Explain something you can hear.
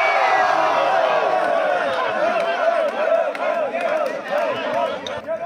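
A large outdoor crowd shouts and cheers loudly.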